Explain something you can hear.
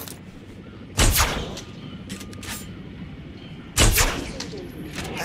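A rifle fires loud sharp shots.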